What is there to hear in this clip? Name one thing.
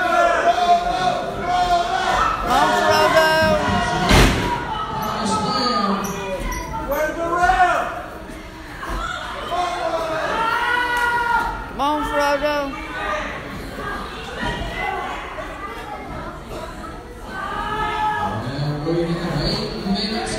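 A crowd of men and women shouts and cheers in a large echoing hall.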